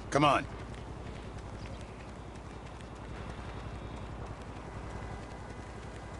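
Footsteps patter on paving as a man runs.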